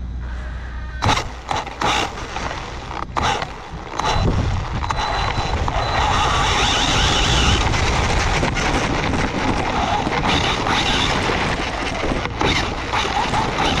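Tyres rustle and bump over grass.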